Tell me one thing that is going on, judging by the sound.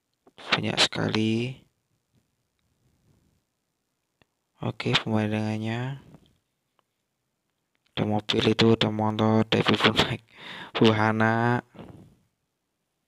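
A man speaks loudly and animatedly close by.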